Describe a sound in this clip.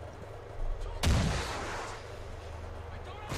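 A rocket launches with a loud rushing whoosh.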